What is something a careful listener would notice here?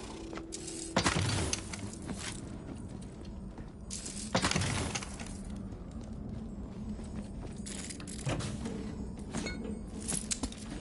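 Heavy chests clunk open one after another.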